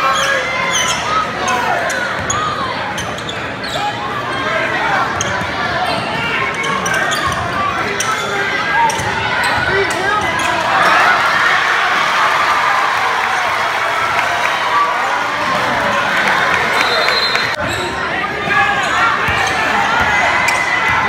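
A large crowd cheers and shouts in a large echoing gym.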